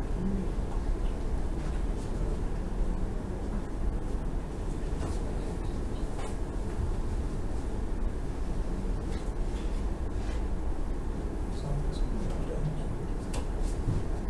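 A young man speaks calmly over a video call, played through loudspeakers in a large echoing room.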